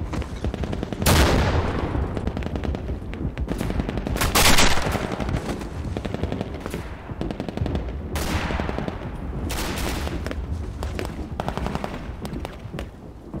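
Gunfire cracks in loud bursts.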